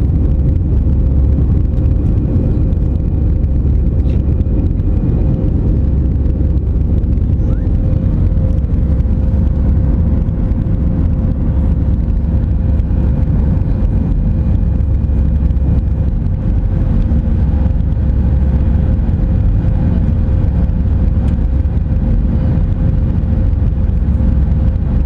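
A jet airliner's engines roar steadily inside the cabin.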